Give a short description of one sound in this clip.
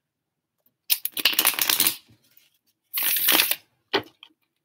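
Playing cards are shuffled with a quick riffle.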